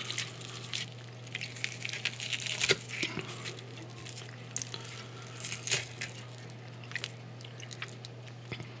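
Food squelches and crackles close to a microphone.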